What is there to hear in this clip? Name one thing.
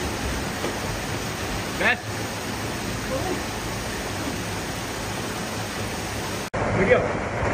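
Water splashes and laps around a child in a pool.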